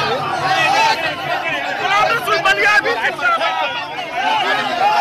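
A crowd of men chants and shouts loudly outdoors.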